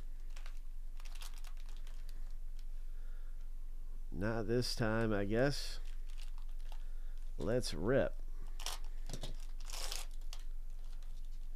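A foil card wrapper crinkles and tears as it is opened.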